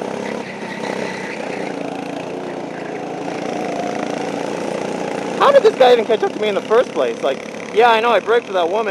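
A go-kart engine buzzes loudly nearby.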